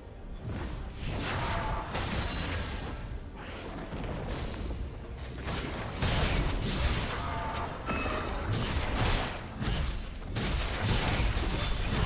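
Fantasy game spell effects whoosh and crackle in bursts.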